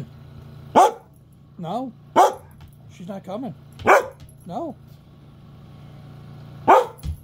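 A dog barks sharply and loudly close by.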